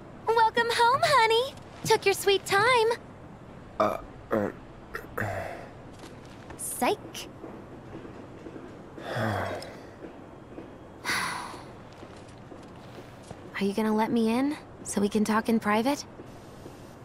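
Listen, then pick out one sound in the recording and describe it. A young woman speaks playfully and teasingly, close by.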